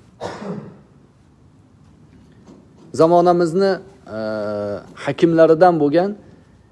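A middle-aged man speaks calmly and with emphasis, close by.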